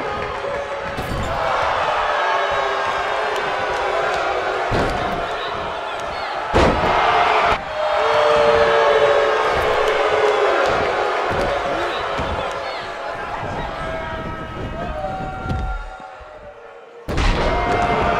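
Heavy bodies slam onto a wrestling ring mat with loud thuds.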